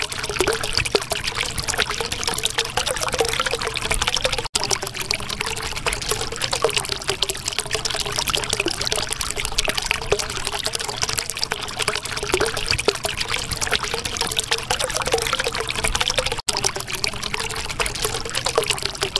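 Air bubbles gurgle and pop steadily in water.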